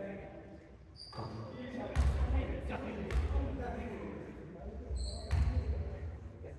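Sneakers squeak on a wooden gym floor.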